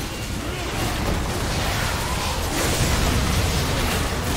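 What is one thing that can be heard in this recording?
Magic blasts and impacts crackle and boom in a video game fight.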